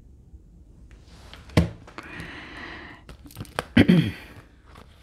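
Playing cards shuffle and slide against each other.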